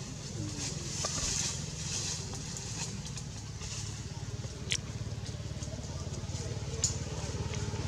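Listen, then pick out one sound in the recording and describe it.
Leaves and branches rustle as a small monkey scrambles through a tree.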